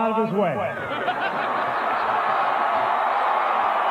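Men laugh heartily nearby.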